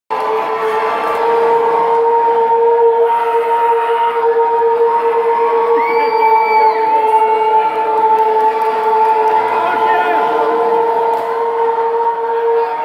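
Live music plays loudly through speakers in a large echoing hall.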